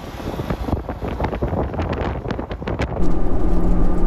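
A motorcycle engine rumbles as it rides past.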